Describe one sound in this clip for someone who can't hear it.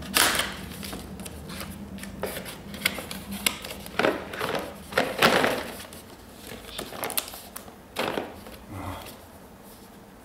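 Cardboard packaging rustles and scrapes as hands open a box.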